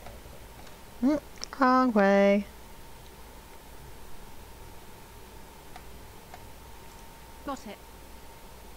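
A young woman speaks briefly and with animation into a close microphone.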